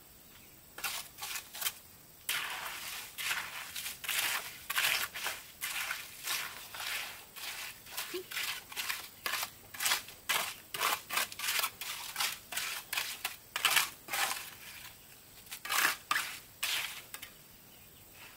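A trowel scrapes and taps against bricks and wet mortar.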